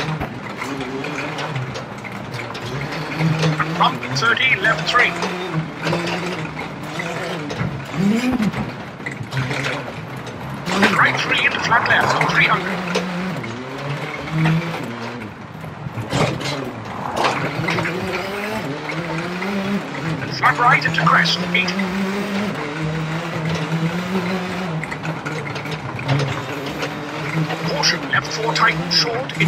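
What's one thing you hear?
A rally car engine roars and revs up and down through the gears.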